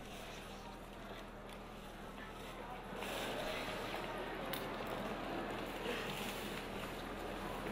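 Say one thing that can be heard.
A large crowd murmurs and chatters outdoors, growing louder.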